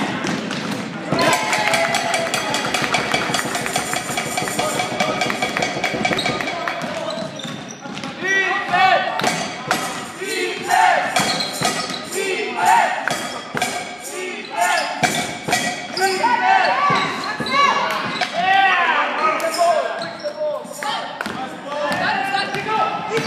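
A basketball bounces on a wooden floor with a hollow thud.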